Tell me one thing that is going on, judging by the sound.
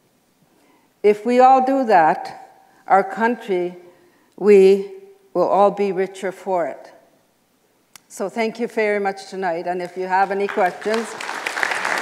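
A middle-aged woman speaks calmly into a microphone in an echoing room.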